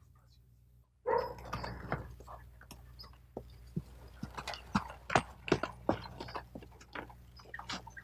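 A horse's hooves clop on a dirt path.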